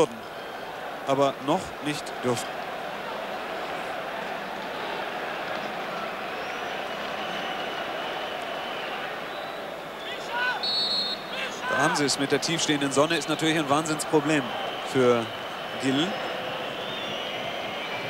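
A large stadium crowd murmurs and roars steadily outdoors.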